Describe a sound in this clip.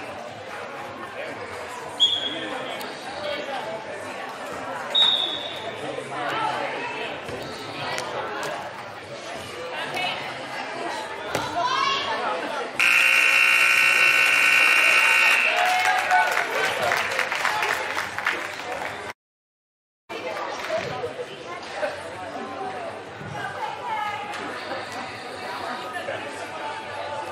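Young women shout and call out across a large echoing hall.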